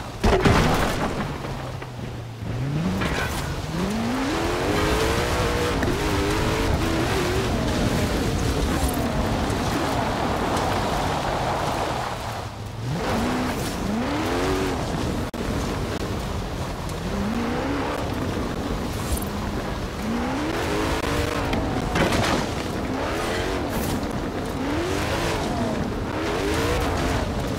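A racing car engine roars and revs up repeatedly through the gears.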